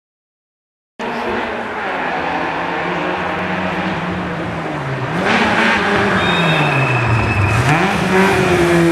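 A four-cylinder petrol rally car approaches, revving hard and shifting gears.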